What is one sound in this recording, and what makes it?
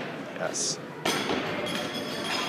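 A thrown hammer lands with a thud in a large echoing hall.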